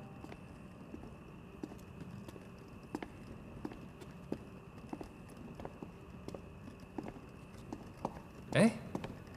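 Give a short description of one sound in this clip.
Footsteps click steadily on a hard floor.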